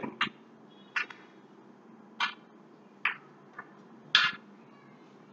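Snooker balls clack together and roll across the table.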